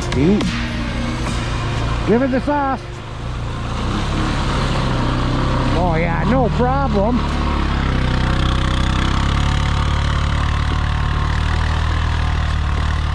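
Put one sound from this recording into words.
An all-terrain vehicle engine rumbles steadily close by.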